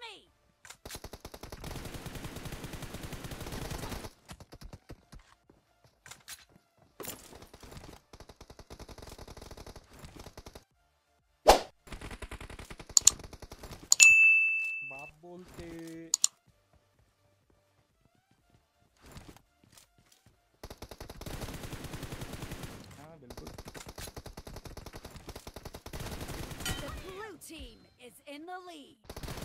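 Rapid bursts of automatic gunfire rattle in quick succession.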